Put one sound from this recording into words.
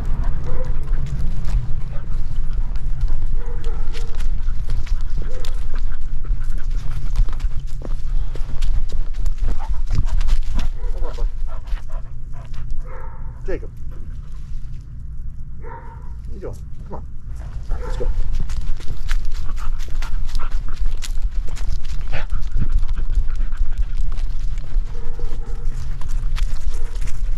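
A dog's paws pad steadily over grass and pavement.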